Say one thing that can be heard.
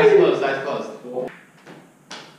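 A man speaks loudly to a group in a room.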